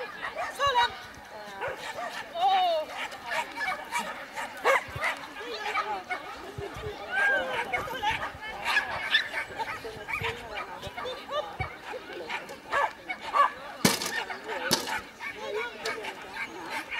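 A woman calls out commands to a dog outdoors.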